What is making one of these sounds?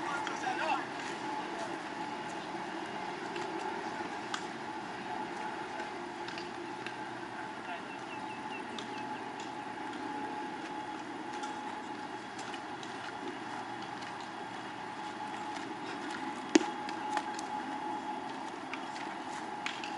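Men call out faintly across an open outdoor field.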